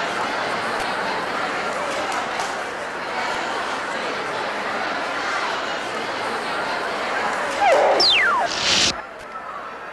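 A large crowd cheers and murmurs.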